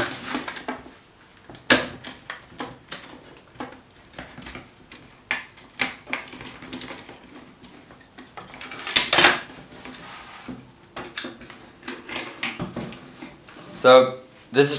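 A cordless drill knocks against a wooden bench.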